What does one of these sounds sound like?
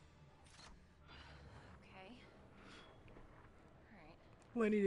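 A young woman speaks softly with relief, close by.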